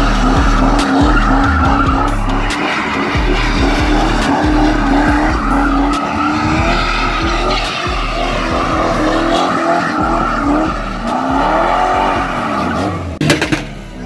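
Tyres screech and squeal on pavement.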